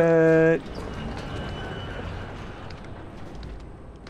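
A heavy metal gate creaks open.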